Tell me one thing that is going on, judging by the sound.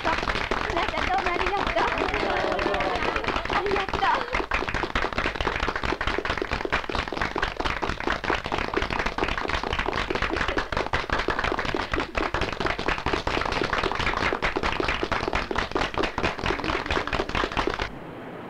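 A group of people clap their hands quickly and steadily.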